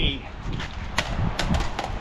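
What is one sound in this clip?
A metal pipe clatters onto concrete.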